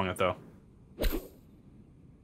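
A golf ball is struck with a sharp whack.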